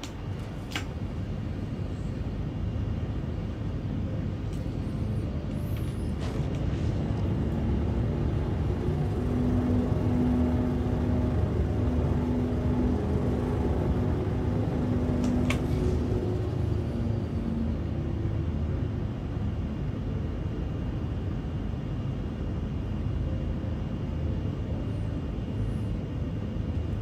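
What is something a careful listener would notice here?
A spacecraft engine hums with a low, steady rumble.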